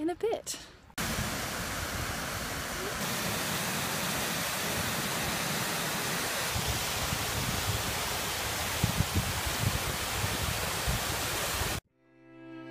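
A waterfall rushes and splashes steadily.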